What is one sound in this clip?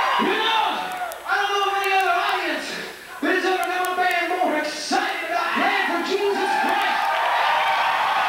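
A man shouts into a microphone over loudspeakers.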